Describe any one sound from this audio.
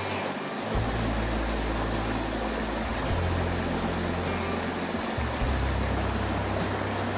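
A stream rushes and splashes over rocks in a steady roar.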